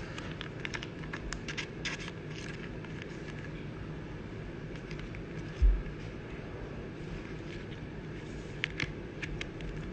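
Plastic card sleeves rustle and crinkle softly.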